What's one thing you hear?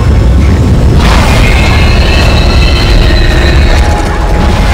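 A crackling energy blast bursts out.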